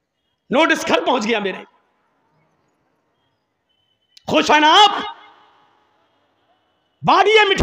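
A man preaches loudly and with passion into a microphone, in short bursts with pauses, his voice echoing through loudspeakers.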